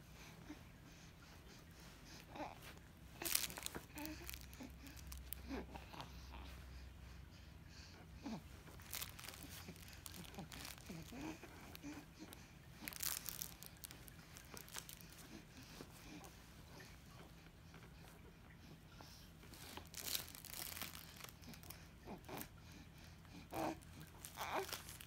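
A crinkly fabric toy rustles and crackles.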